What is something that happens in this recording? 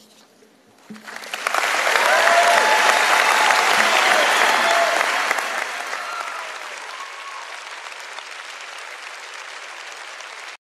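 A large crowd applauds and cheers, then the applause slowly fades.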